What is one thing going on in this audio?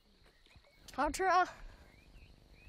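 A boy speaks outdoors.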